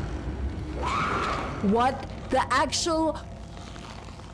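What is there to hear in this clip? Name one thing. A young woman screams close to a microphone.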